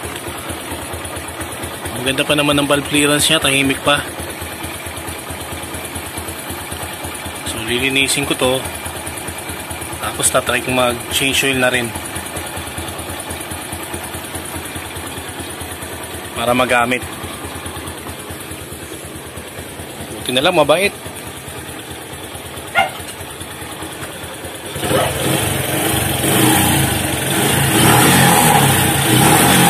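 A motorcycle engine idles close by with a steady, fast putter.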